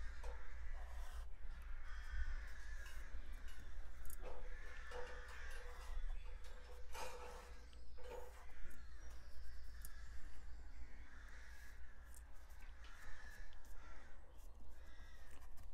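A paintbrush scrapes and dabs softly on a canvas.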